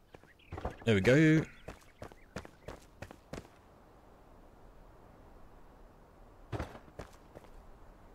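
Footsteps tread on stone ground.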